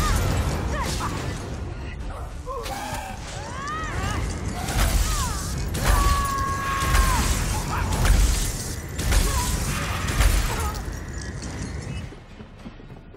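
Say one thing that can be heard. Weapons clash loudly.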